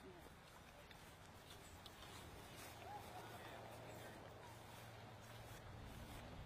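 Footsteps swish softly through grass.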